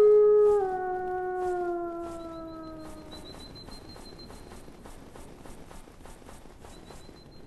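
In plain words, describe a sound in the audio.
Heavy hooves thud steadily on snow.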